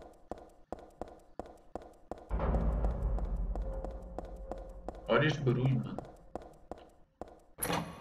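Footsteps clack on hard stone stairs.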